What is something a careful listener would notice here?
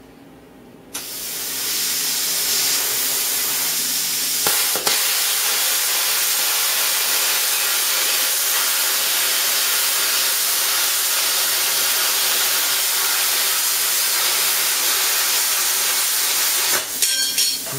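A plasma cutter hisses loudly and steadily as it cuts through metal.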